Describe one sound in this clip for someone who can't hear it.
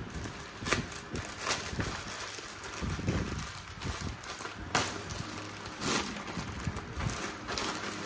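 Plastic tears as a bag is ripped open.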